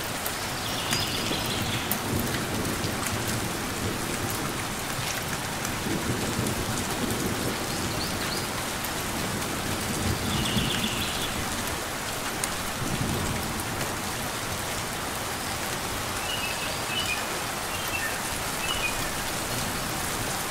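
Steady rain patters on leaves outdoors.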